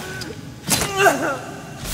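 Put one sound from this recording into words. A blade stabs into a body with a sharp, wet thrust.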